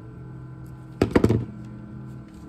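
A small circuit board is set down with a sharp tap.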